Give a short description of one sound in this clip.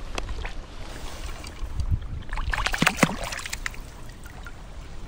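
Water splashes as a fish is released from a net.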